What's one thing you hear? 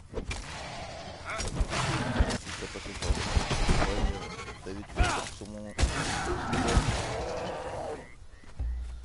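A large beast roars and snarls.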